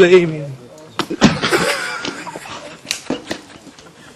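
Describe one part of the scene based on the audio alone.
Shoes scuff on rock.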